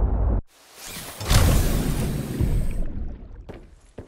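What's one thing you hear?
A hatch clunks and hisses as it opens.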